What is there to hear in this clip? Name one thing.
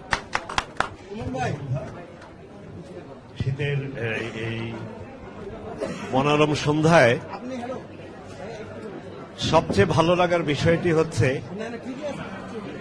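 An elderly man speaks with animation through a microphone and loudspeakers.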